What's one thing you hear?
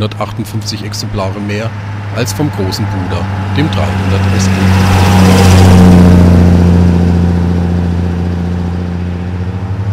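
A car engine hums steadily as the car drives past, growing louder and then fading away.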